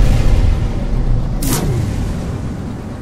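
A loud rushing roar sweeps past and fades away.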